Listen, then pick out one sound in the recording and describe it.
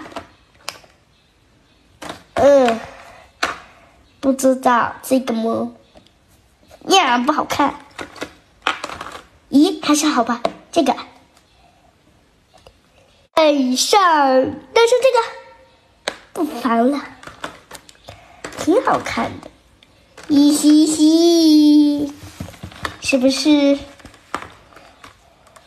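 Cardboard pieces rustle and clatter as they are sorted in a plastic tray.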